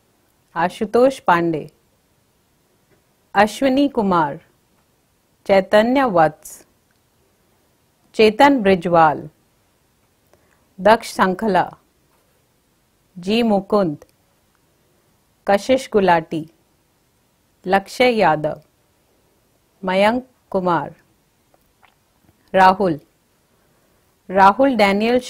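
A young woman reads out names clearly through a microphone, pausing briefly between each one.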